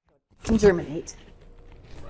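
An older woman speaks briefly and calmly close by.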